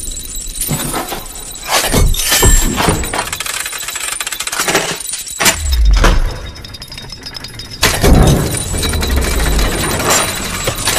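Metal gears turn and clank with a mechanical whirr.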